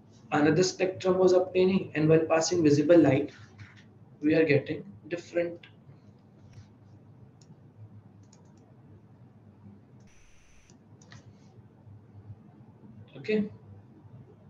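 A young man speaks calmly into a microphone, heard as on an online lecture.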